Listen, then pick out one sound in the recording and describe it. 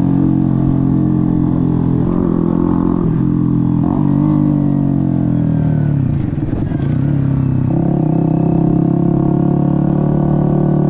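A motorcycle engine hums steadily up close, its pitch dipping and rising as the rider shifts and slows.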